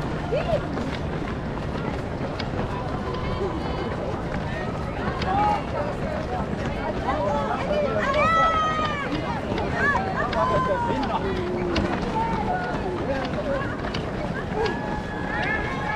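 A crowd of spectators cheers and shouts along the route.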